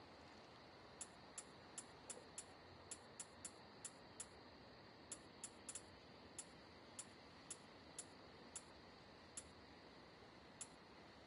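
Soft menu clicks tick repeatedly as a list scrolls.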